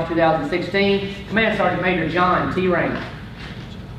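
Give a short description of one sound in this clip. A man speaks clearly and formally in a large room.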